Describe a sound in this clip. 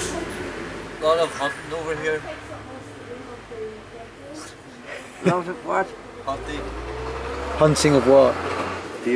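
A young man talks casually nearby, outdoors.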